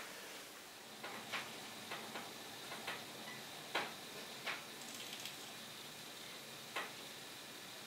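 A paintbrush taps and dabs against a canvas.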